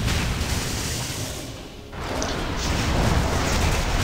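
Magic spells burst and crackle during a fight.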